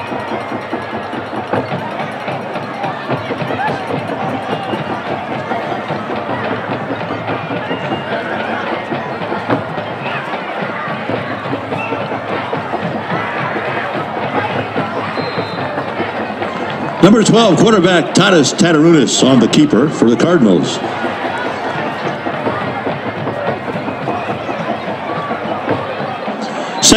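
A large outdoor crowd murmurs and cheers steadily.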